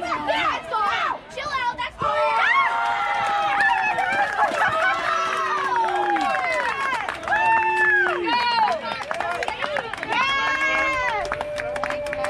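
A crowd of spectators cheers and shouts excitedly outdoors.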